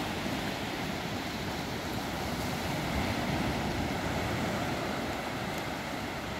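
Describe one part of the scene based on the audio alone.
Small waves wash steadily onto a beach.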